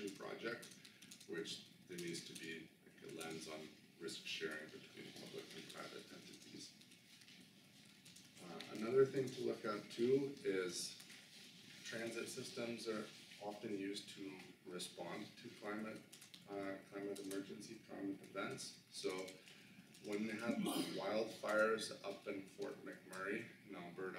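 A man speaks calmly and steadily to an audience.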